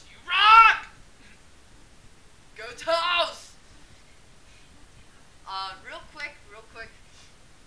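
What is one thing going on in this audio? A woman speaks and exclaims in short, animated, high-pitched bursts close to a microphone.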